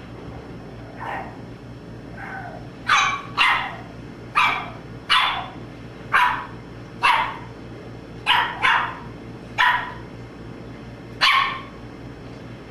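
A puppy barks sharply in short bursts nearby.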